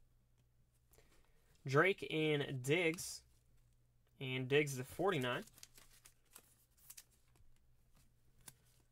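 Cards in plastic sleeves rustle and tap softly as they are handled.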